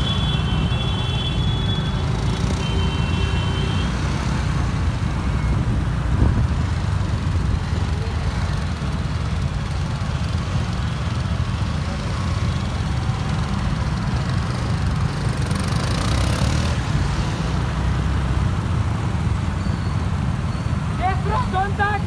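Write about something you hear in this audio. Wind rumbles across the microphone of a moving motorcycle.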